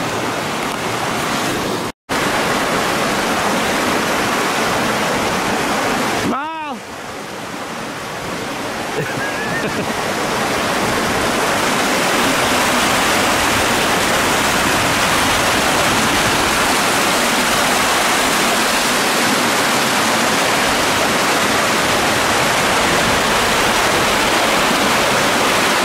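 Water rushes and splashes over rocks, loud and close.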